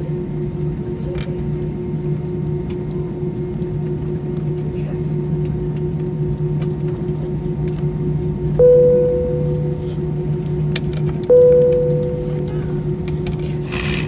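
A jet engine hums steadily from inside an aircraft cabin as the plane taxis.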